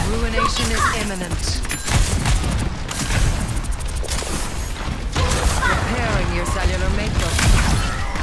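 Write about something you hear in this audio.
Energy weapon blasts crackle and hiss rapidly.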